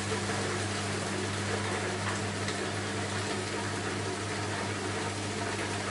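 Water sloshes and splashes inside a washing machine drum.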